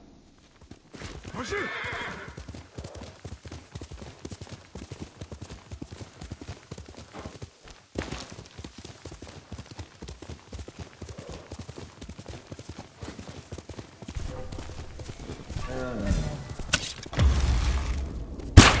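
A horse gallops, its hooves drumming quickly on soft ground.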